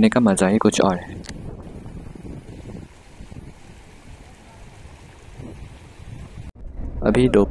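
A shallow river rushes and gurgles over stones.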